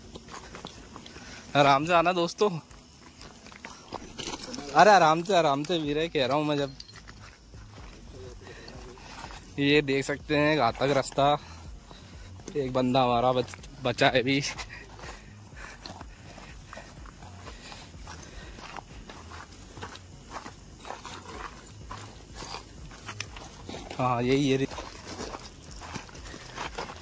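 Footsteps crunch on a stony dirt path.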